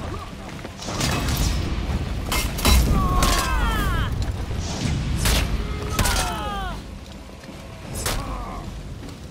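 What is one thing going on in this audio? Metal blades clash and strike hard.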